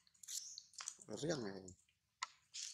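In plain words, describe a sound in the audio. A baby monkey squeals close by.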